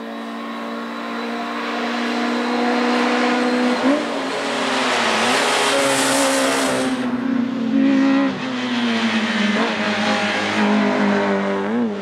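A rally car engine revs hard and roars past at speed.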